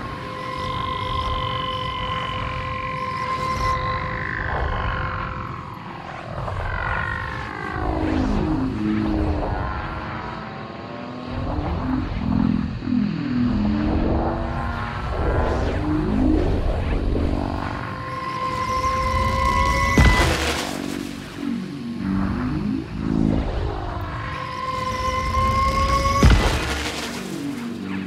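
A television hisses with static.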